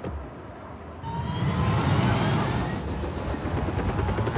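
A helicopter engine starts up and whines louder as its rotor spins.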